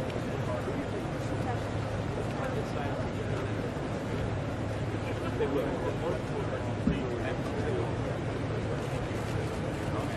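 Several people murmur in the background outdoors.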